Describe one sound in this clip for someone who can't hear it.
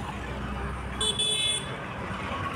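A vehicle horn honks sharply.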